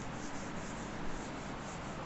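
Chalk scrapes on a board.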